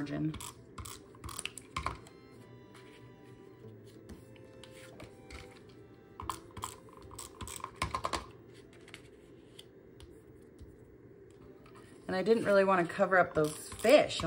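A glue tape roller clicks as it presses against paper.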